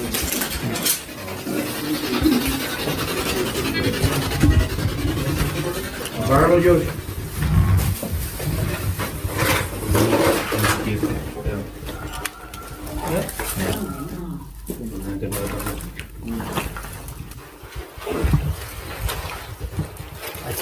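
Several young men talk in low, tense voices close by.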